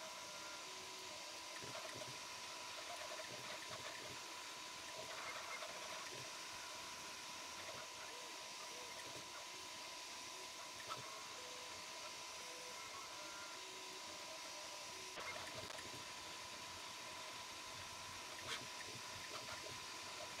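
A printer's fan hums steadily.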